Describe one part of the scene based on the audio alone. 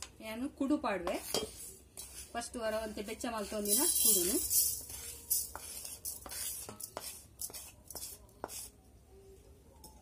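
A metal spoon scrapes against a metal pan.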